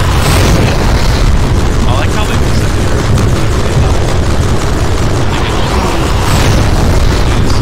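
Rapid gunfire and energy blasts crackle continuously.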